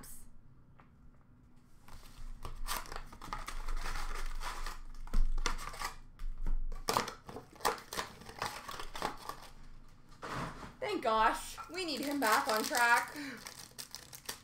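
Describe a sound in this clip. Card packs rustle and tap on a counter.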